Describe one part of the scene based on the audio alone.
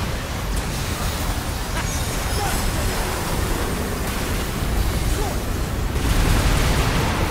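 Flames crackle and rumble.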